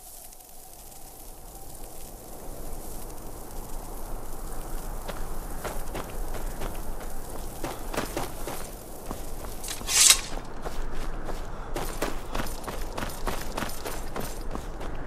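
Footsteps crunch steadily over stone and grass.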